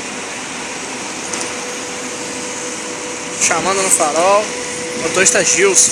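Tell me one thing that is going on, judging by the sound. A bus engine hums steadily as the bus rolls slowly past.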